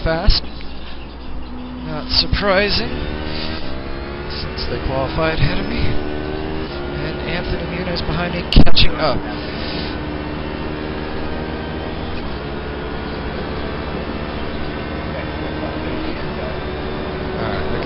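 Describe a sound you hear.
A race car engine drones and shifts pitch through gears from loudspeakers.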